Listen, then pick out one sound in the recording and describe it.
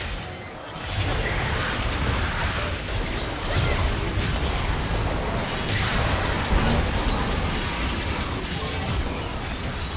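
Spell effects whoosh and crackle.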